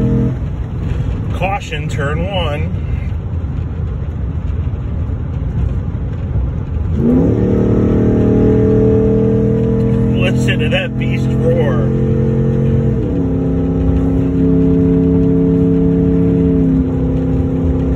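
Tyres rumble steadily on a road.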